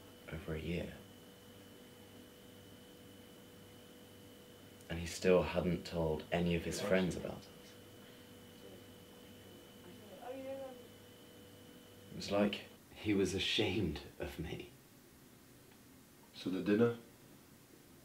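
A young man speaks quietly and intently.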